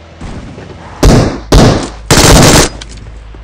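A machine gun fires loud bursts.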